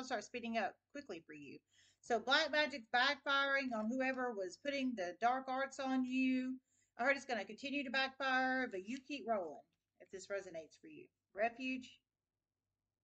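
A woman talks calmly and closely into a microphone.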